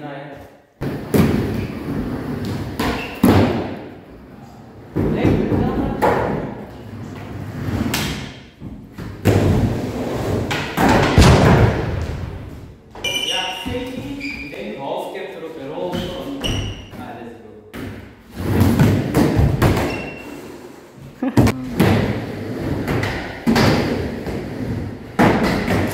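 A skateboard deck clatters and slaps onto wood.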